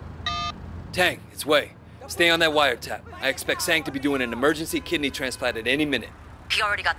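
A man talks calmly on a phone.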